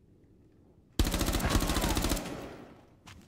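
A rifle fires a rapid burst of shots at close range.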